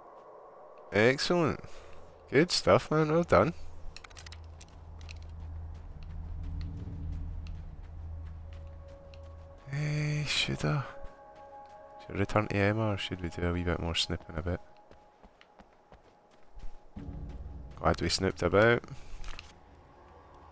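A person talks with animation close to a microphone.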